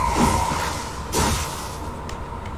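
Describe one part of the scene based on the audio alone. An electric charge crackles and zaps.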